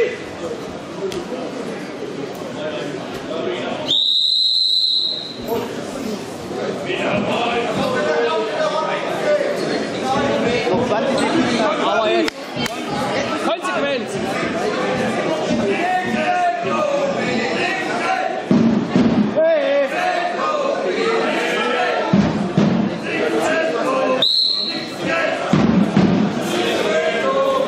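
A crowd of spectators murmurs and chatters throughout.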